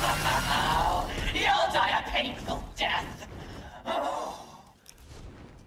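A huge creature roars loudly and rumbles.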